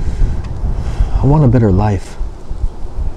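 A man speaks briefly outdoors.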